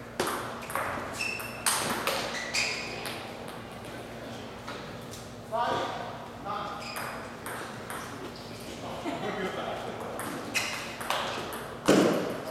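A table tennis ball clicks back and forth off paddles and the table in an echoing hall.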